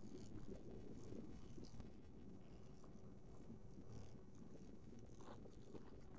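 Wind blows and rumbles against the microphone outdoors.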